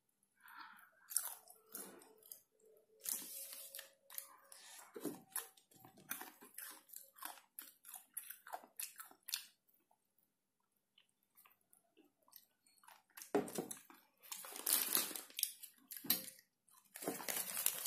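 Paper rustles and crinkles as hands handle a food wrapper.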